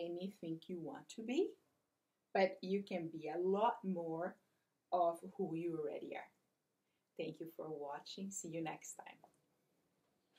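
A woman speaks clearly and expressively close by, reading aloud.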